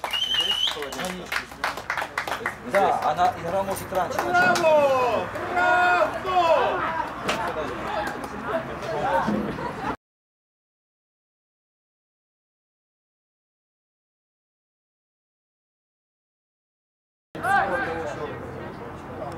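Young men shout from across an outdoor football pitch.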